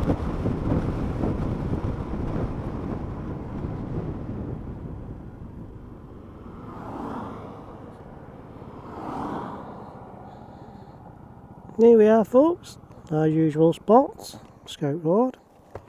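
A motorcycle engine hums and quietens as the motorcycle slows.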